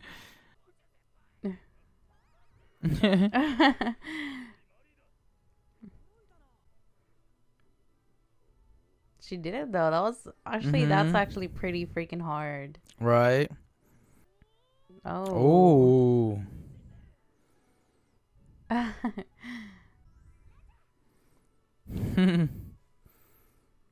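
A young woman laughs and talks close to a microphone.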